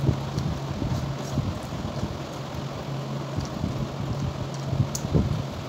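A young woman chews food close to the microphone with her mouth open, smacking her lips.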